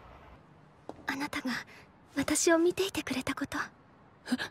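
A young woman sobs and whimpers softly.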